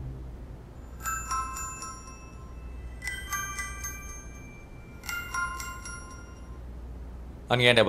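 A phone rings in short repeated bursts.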